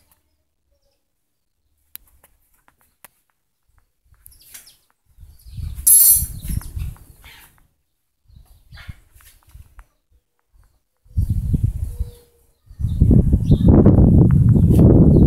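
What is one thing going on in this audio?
Pigeons coo on overhead wires.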